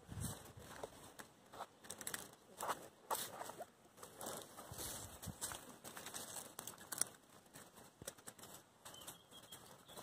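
Puppies scuffle and scrape on dry dirt and straw close by.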